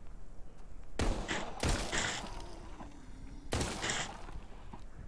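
Gunshots ring out from a pistol, each followed by a short echo.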